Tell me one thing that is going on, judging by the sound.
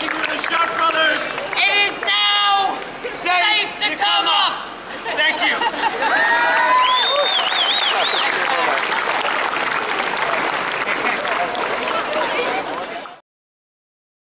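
A young man shouts loudly to a crowd.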